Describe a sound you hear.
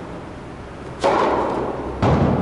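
A tennis racket strikes a ball hard, echoing in a large hall.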